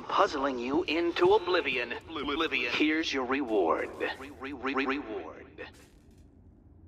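A man speaks theatrically through a loudspeaker.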